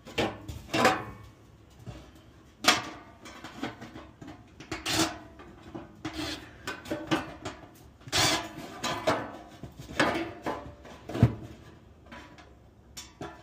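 A cordless impact driver whirs and rattles in short bursts, driving screws into sheet metal.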